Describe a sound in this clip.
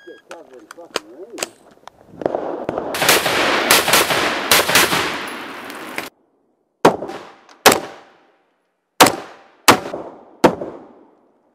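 A rifle fires a string of sharp, loud shots outdoors, each echoing briefly.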